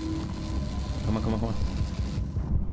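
A man speaks into a close microphone.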